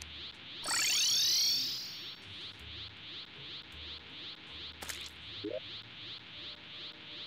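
Electronic game music plays with a steady pulsing beat.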